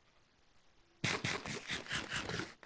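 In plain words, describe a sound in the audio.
A game character munches food in quick, loud bites.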